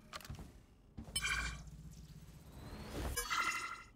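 A magical ability crackles and whooshes as it is cast.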